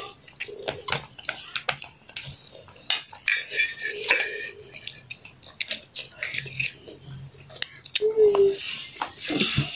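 A child loudly slurps noodles close up.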